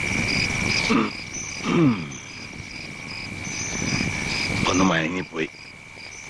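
An elderly man groans softly.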